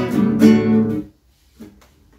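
An acoustic guitar strums a loud chord that rings briefly and stops.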